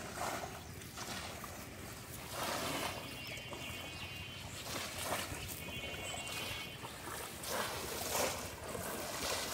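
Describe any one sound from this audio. Bamboo fish traps plunge into shallow water with splashes.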